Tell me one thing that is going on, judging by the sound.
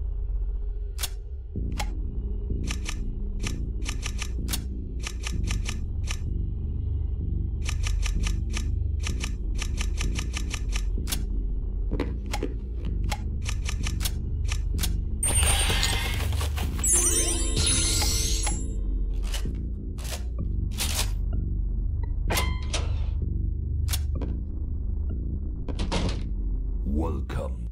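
Short electronic menu blips click in quick runs.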